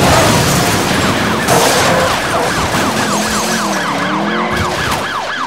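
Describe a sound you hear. A police siren wails rapidly up and down.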